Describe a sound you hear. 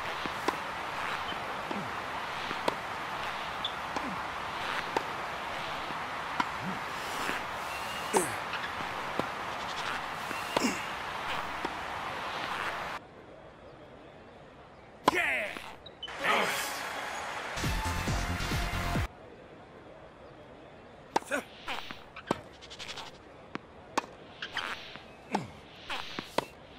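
Tennis rackets strike a ball back and forth with sharp pops.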